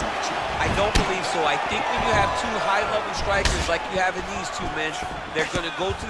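Punches and kicks thud against bodies.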